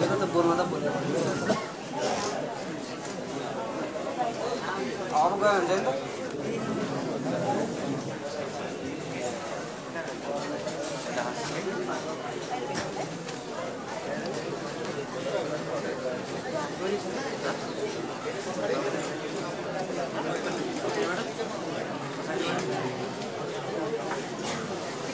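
A crowd of men and women chatters in a large echoing hall.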